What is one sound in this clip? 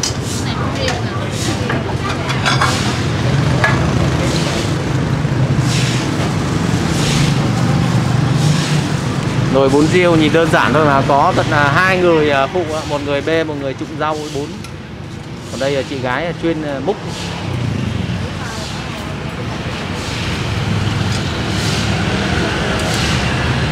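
A metal ladle clinks and scrapes against a large pot.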